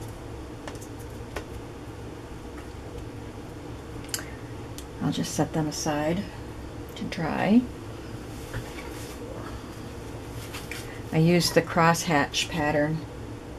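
Paper tags rustle and tap softly as they are handled.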